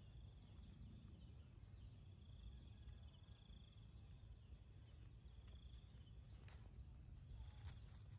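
A chain-link fence rattles as a small monkey climbs it.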